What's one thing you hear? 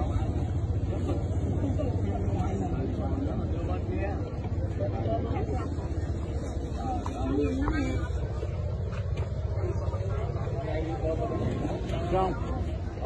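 A crowd of men and women talk over one another outdoors.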